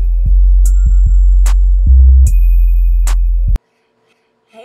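Loud electronic music plays.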